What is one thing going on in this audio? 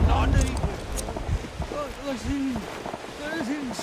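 Metal parts of a rifle click and clatter as it is handled.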